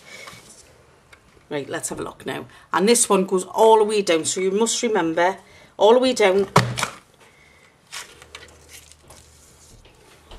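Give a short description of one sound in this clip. A paper punch clunks as it presses through card.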